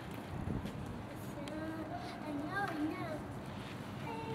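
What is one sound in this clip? Bicycle tyres roll softly over concrete.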